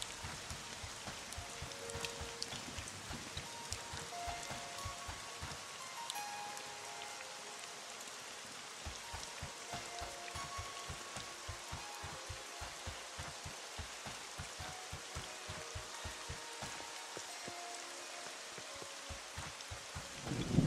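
Rain patters steadily.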